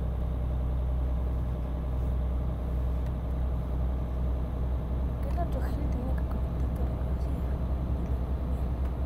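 A truck engine rumbles steadily as the truck drives along a road.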